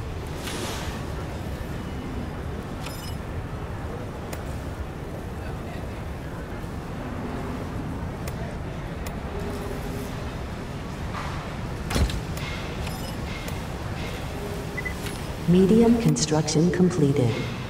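Soft interface clicks sound now and then.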